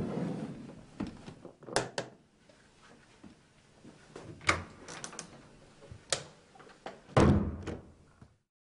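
Hands fumble with the latches of a metal case, which click.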